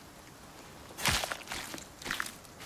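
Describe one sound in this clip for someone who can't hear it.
A blade hacks into an animal carcass.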